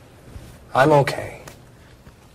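A young man speaks reassuringly, close by.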